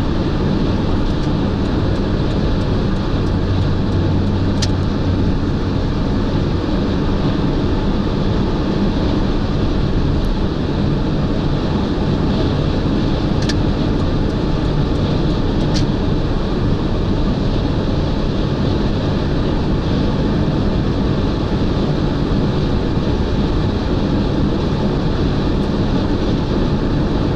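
Tyres roar steadily on a motorway.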